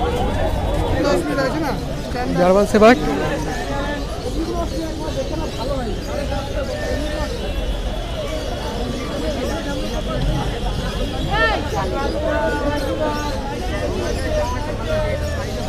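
Men talk nearby.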